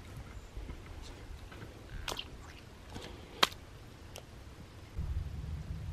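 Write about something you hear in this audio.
Boots splash and squelch in shallow muddy water.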